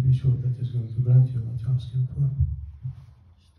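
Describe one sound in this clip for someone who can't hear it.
A man speaks calmly through a microphone and loudspeakers in a room.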